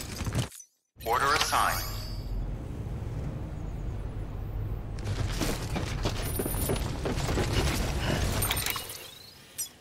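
Heavy footsteps thud across a hard floor.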